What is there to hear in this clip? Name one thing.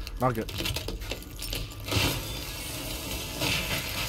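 Glass shatters and crashes down.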